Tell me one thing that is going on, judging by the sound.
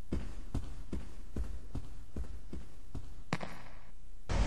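Footsteps knock on a wooden floor at a steady walking pace.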